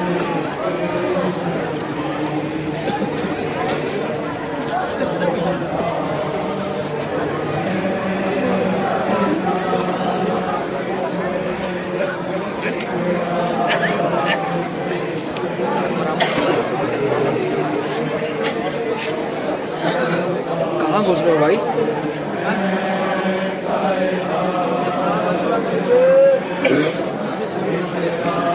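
A large crowd of men chants and wails together close by.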